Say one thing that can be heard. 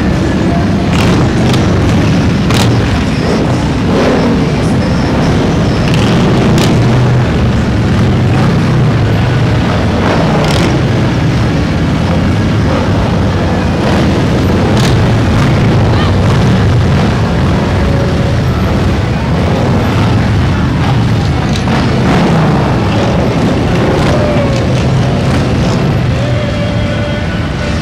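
Many motorcycle engines rumble steadily as a line of bikes rolls past close by.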